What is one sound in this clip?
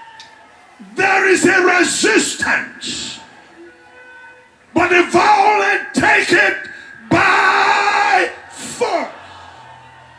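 A man shouts with fervour into a microphone, heard through loudspeakers in bursts.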